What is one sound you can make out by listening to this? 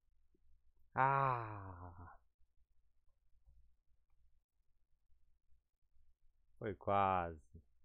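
A young man speaks with animation close to a headset microphone.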